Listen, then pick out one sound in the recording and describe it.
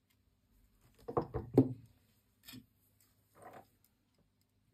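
A circuit board knocks and rattles as it is set down on a rubber mat.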